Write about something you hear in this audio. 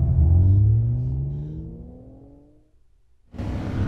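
A car engine revs up, rising in pitch, then fades away.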